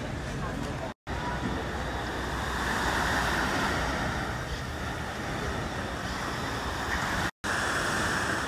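Waves wash onto a beach below.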